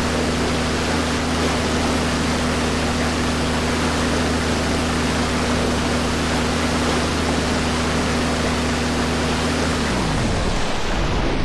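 A boat engine drones steadily, then winds down.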